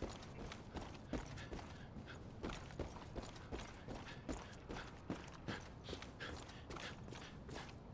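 Footsteps thud steadily on hard pavement.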